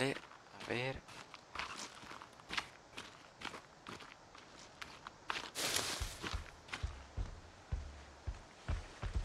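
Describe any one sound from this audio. Footsteps rustle through grass and undergrowth at a steady walking pace.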